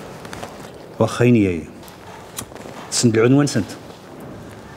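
An older man asks a question in a low, calm voice.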